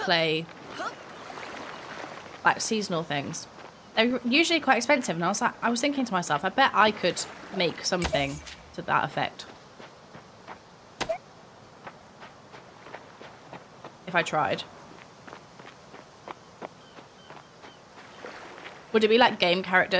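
A young woman talks casually into a close microphone.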